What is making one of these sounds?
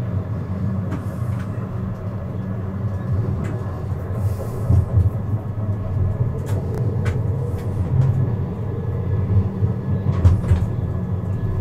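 Tram wheels clatter and click over rail joints.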